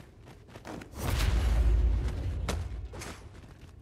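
A heavy magical blast booms and rumbles.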